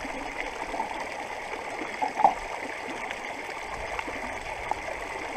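A shallow stream babbles steadily over stones.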